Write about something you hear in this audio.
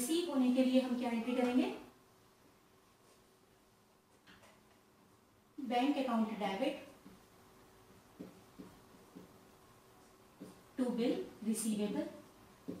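A woman speaks calmly and clearly close to a microphone, in short phrases.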